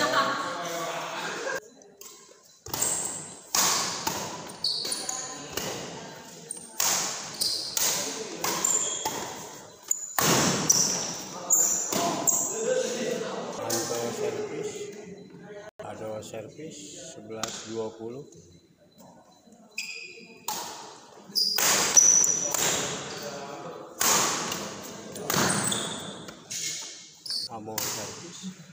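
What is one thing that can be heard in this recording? Shuttlecocks are struck sharply by rackets in a large echoing hall.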